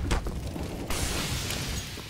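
A grenade explodes with a loud bang nearby.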